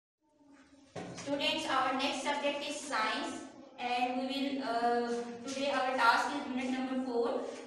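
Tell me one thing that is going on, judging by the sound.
A woman speaks clearly and steadily nearby.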